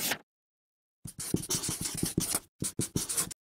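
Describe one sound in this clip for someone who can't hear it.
A marker squeaks and scratches across paper.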